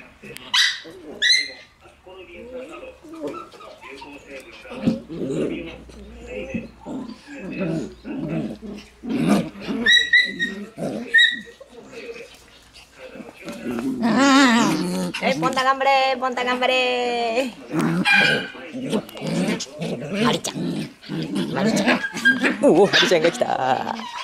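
Puppies growl and snarl playfully.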